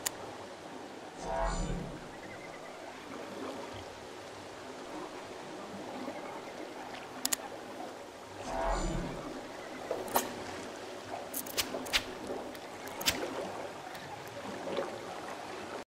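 Water laps and ripples steadily.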